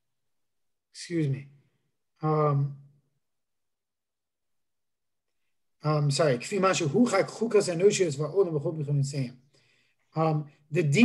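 A young man reads aloud in a low chanting voice over an online call.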